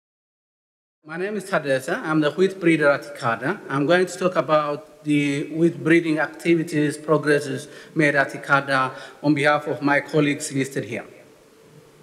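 A man speaks calmly into a microphone in a hall.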